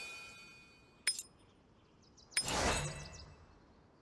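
Short interface clicks and swishes sound as menus open and close.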